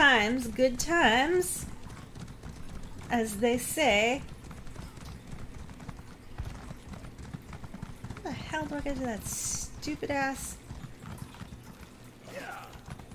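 Hooves thud in a quick, steady rhythm on dirt.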